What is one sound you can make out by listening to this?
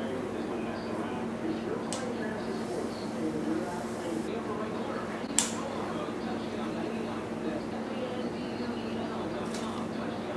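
A knife taps on a cutting board.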